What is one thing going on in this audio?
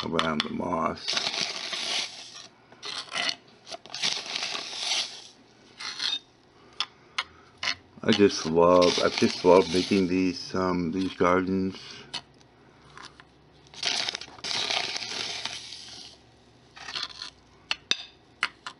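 A spoon scrapes and spreads dry sand.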